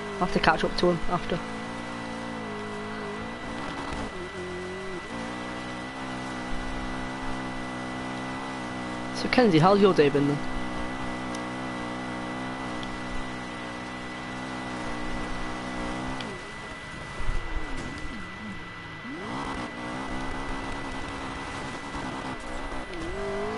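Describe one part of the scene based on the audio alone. A racing car engine roars at high speed, its pitch rising and falling with gear changes.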